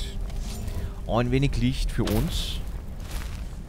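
A spell crackles and hums in a hand.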